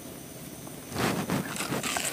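A woman bites into juicy watermelon close by.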